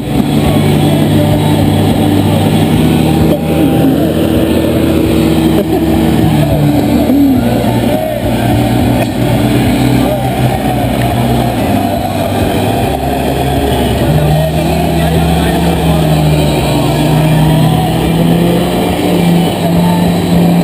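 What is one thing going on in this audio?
An off-road vehicle's engine roars and revs hard.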